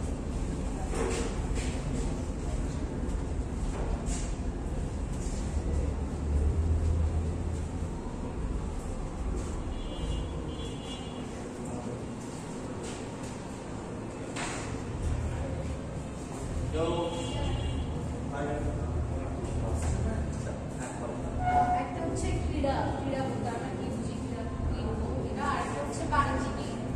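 A young man speaks calmly to a room, heard from a distance with some echo.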